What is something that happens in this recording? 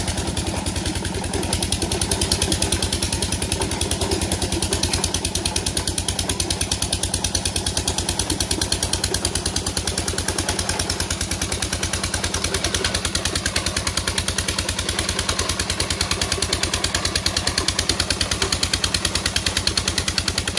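A small engine chugs steadily with a fast, even thumping.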